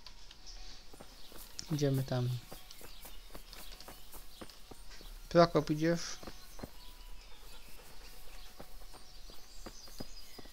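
Footsteps crunch quickly on a gravel path.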